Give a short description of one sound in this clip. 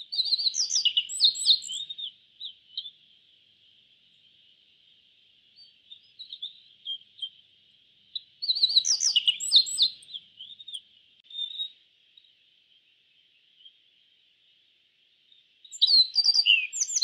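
A small bird sings bright, quick chirping phrases in bursts.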